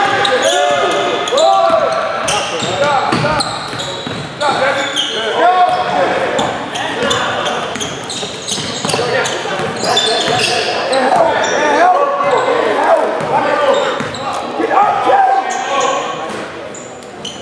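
A basketball bounces on the hardwood floor.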